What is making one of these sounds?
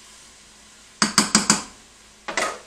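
A spoon taps against the rim of a metal pot.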